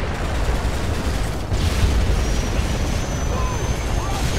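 A helicopter flies overhead with a low thumping.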